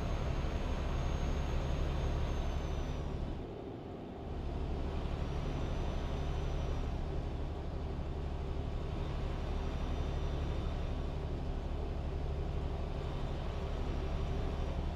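A truck engine drones steadily, dipping briefly for a moment.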